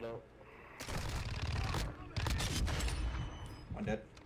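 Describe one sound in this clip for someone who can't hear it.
Gunfire bursts out in quick, loud rattles.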